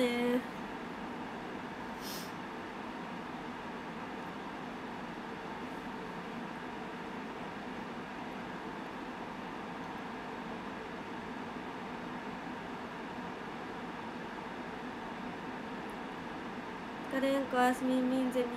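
A young woman speaks brightly, close to the microphone.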